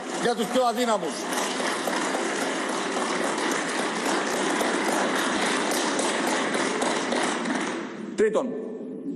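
A crowd claps and murmurs in a large hall.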